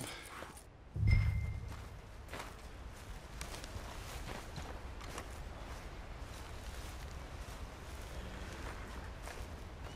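Footsteps crunch on grass and gravel.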